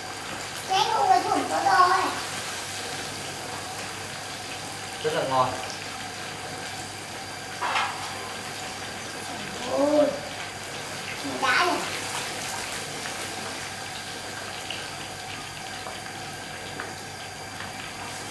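Oil sizzles steadily in a pan.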